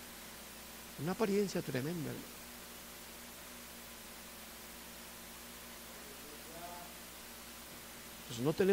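A man speaks calmly through a microphone, with long pauses.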